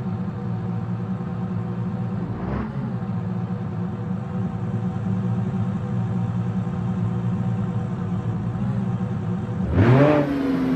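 A sports car engine idles.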